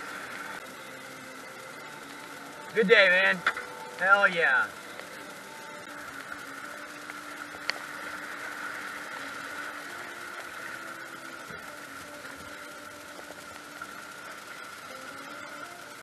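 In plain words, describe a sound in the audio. Water rushes and splashes over river rapids.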